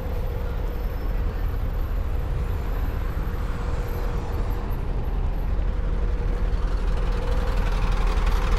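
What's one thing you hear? Footsteps tap on a paved sidewalk outdoors.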